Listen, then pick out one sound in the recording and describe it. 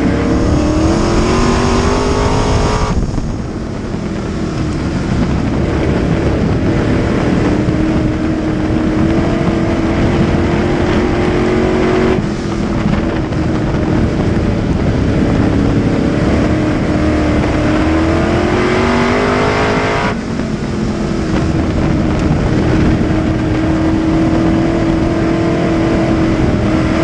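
Tyres rumble and spray over a dirt track.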